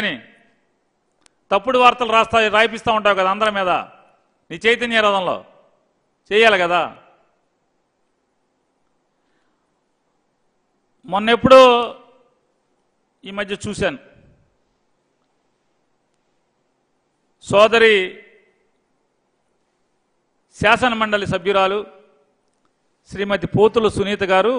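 A middle-aged man speaks emphatically into a close microphone, in bursts with long pauses.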